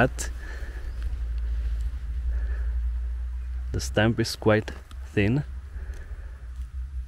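A mushroom stalk is pulled from soft soil.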